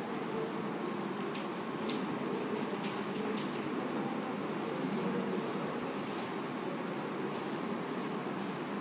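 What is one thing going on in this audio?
A man speaks calmly to a room, heard from a short distance.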